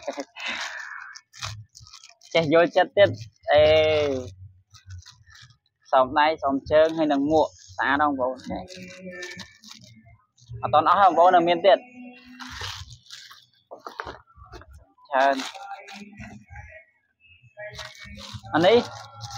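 A plastic wrapper crinkles in a young man's hands.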